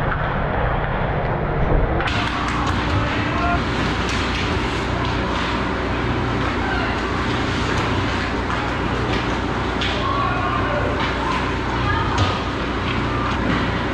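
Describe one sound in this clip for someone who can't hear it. Hockey sticks clack against the ice and the puck.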